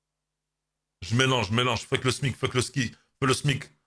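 A man speaks with animation into a headset microphone.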